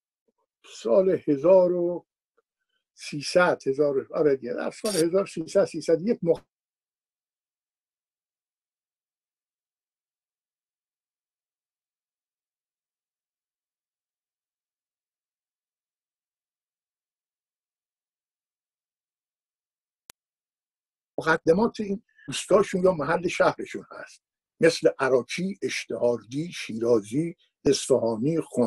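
An elderly man speaks with animation through a headset microphone over an online call.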